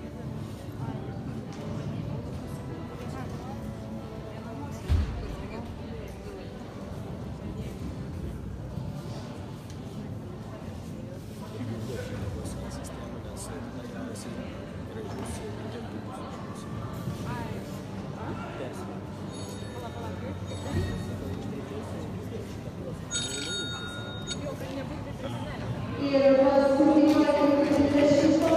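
Spectators murmur and chat quietly in a large echoing hall.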